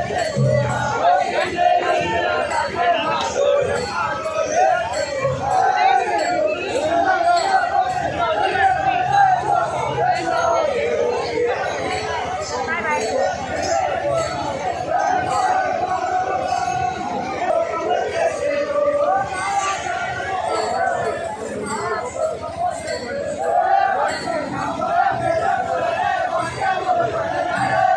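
A large crowd of men chants and shouts loudly outdoors.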